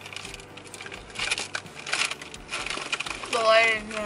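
A young woman bites and crunches a cookie.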